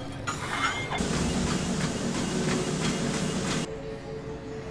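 A treadmill belt whirs under running feet.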